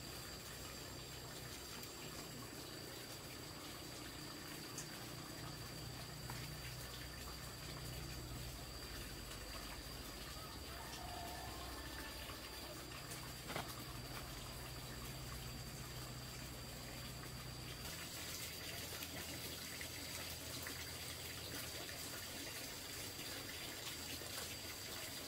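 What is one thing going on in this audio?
Wet clothes rustle softly as they are hung on a line.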